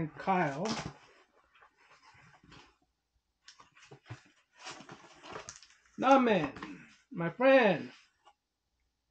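Cardboard rustles and scrapes as a package is opened.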